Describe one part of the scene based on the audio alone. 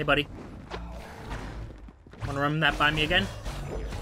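Blades slash and clash in a fight.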